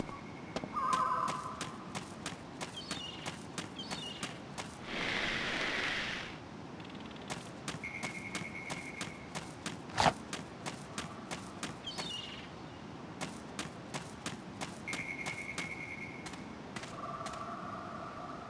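Footsteps patter quickly on grass.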